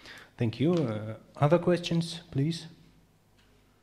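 A young man speaks calmly through a microphone.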